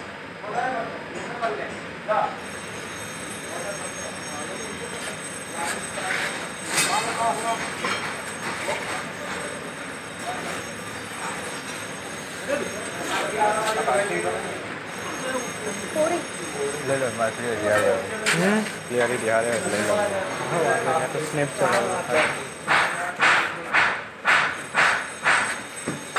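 A furnace roars steadily.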